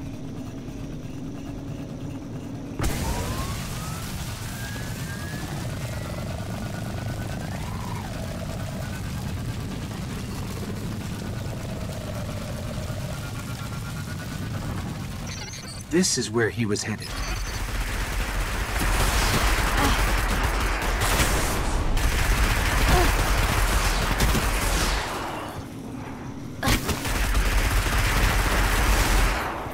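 A hover bike engine hums and whines steadily.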